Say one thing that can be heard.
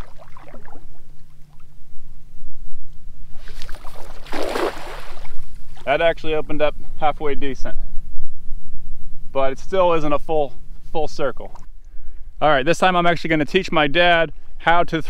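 A man talks calmly and clearly, close by.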